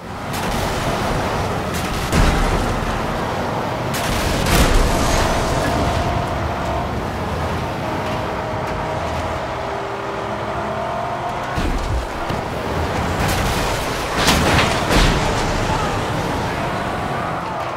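Flamethrowers roar in bursts.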